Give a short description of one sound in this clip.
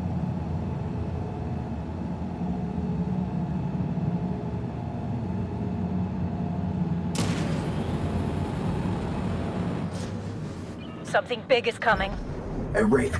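A spaceship engine rumbles steadily.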